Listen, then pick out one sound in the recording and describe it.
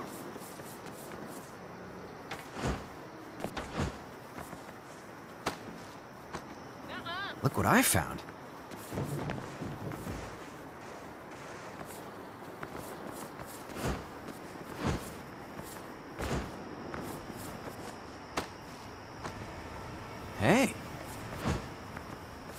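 Footsteps thud on wooden boards and rooftops.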